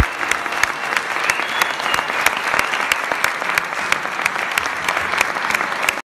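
A woman sings into a microphone through loudspeakers in a large hall.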